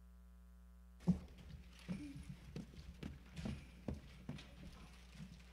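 Children's footsteps thump on a wooden stage.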